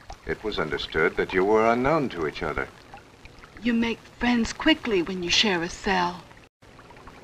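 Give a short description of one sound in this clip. A woman speaks calmly and clearly up close.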